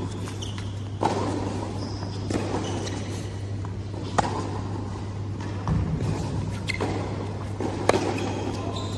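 A tennis ball is struck with a racket with sharp pops, echoing in a large hall.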